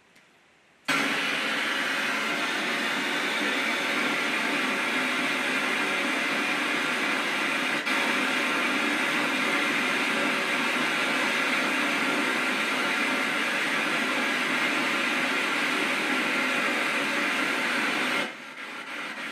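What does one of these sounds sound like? Spray paint hisses steadily from a can close by.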